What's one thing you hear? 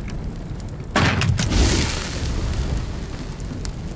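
Flames roar up in a sudden burst, then die down.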